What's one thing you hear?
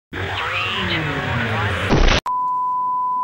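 Television static hisses loudly.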